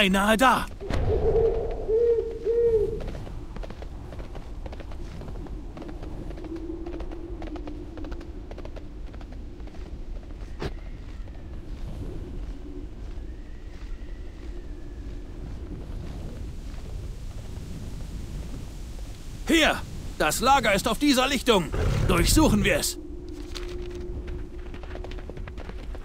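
Footsteps patter quickly on rough ground.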